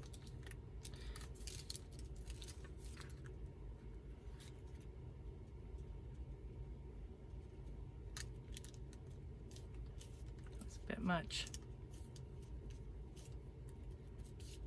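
Paper rustles softly as hands smooth it.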